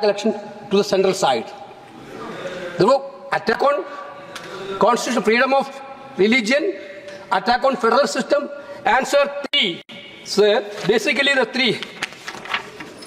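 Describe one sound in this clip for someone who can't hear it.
A middle-aged man speaks with animation into a microphone in a large hall.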